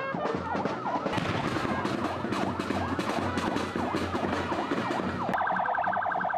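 An ambulance siren wails up and down loudly.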